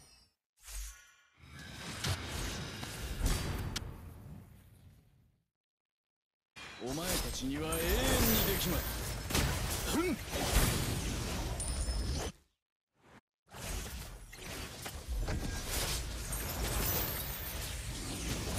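Game spell blasts and clashing effects sound in bursts.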